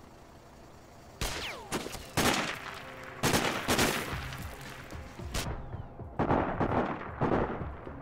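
A rifle fires in short bursts of sharp shots.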